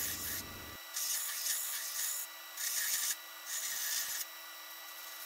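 Metal grinds harshly against a sanding belt in short bursts.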